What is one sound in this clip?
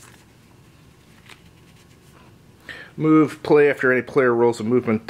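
Paper cards rustle softly as hands shuffle them.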